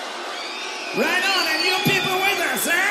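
A man sings loudly into a microphone over loudspeakers.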